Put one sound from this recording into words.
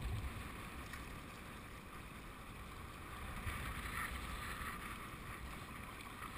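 River rapids rush and churn close by.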